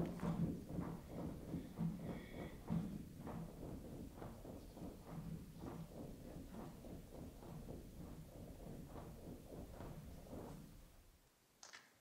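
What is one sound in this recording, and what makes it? A big band of brass and saxophones plays a lively tune in a large hall, then stops.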